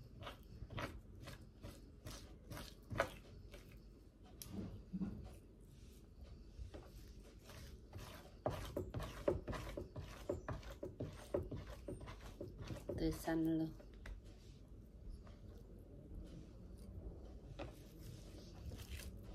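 A knife taps and scrapes on a cutting board.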